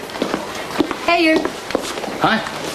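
A young man calls out to someone.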